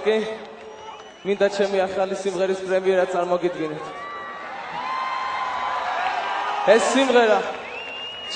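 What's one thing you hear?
A large outdoor crowd chants and cheers loudly.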